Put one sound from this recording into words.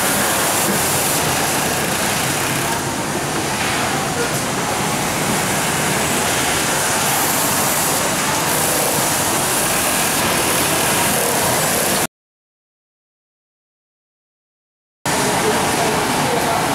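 A sewing machine whirs steadily.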